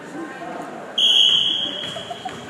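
A referee's whistle blows a long, shrill blast.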